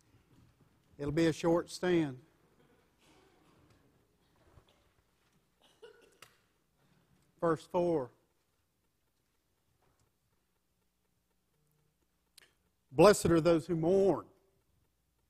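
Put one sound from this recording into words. A middle-aged man speaks through a microphone in short bursts, with pauses, in an echoing hall.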